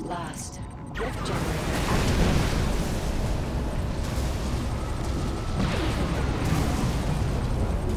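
Explosions rumble and boom in a dense battle.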